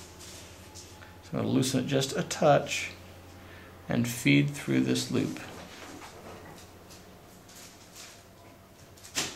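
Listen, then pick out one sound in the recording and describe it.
A braided cord rustles softly as it is pulled through a knot.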